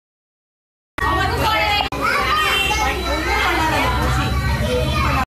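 A crowd of children and women chatter loudly close by.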